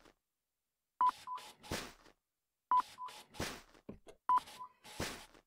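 A checkout scanner beeps sharply several times.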